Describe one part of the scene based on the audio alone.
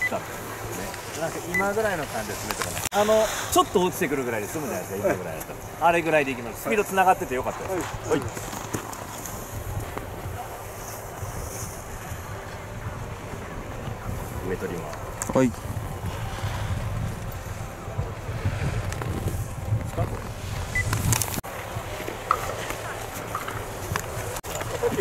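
Skis scrape and hiss across hard snow.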